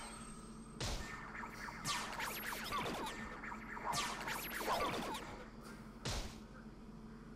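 Punchy impact effects and whooshes hit in quick succession.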